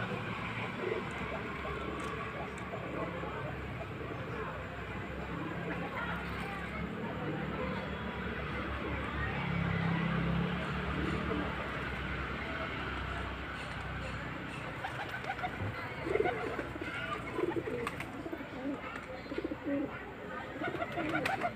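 Pigeons coo in low, throaty calls close by.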